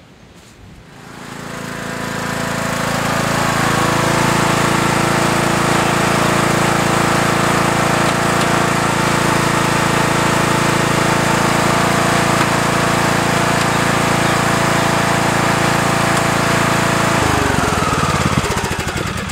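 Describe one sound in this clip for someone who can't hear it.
A riding mower's engine starts and runs loudly and steadily, then winds down and stops.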